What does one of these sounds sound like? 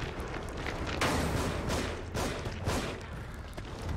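A monstrous creature shrieks and lunges close by.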